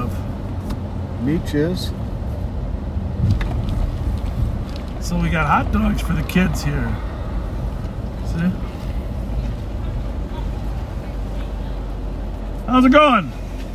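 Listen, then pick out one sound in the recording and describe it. A car engine hums as a car drives slowly.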